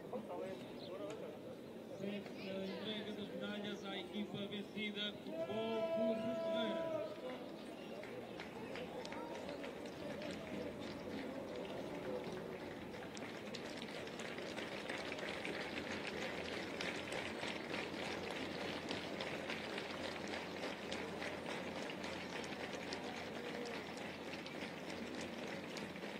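A crowd of fans cheers and chants.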